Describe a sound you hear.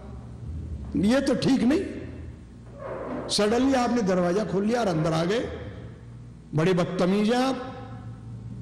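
An older man chants in a melodic voice, close to a microphone.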